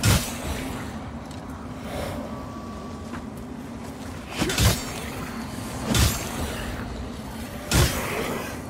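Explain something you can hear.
Heavy weapon blows strike with loud thuds and clangs.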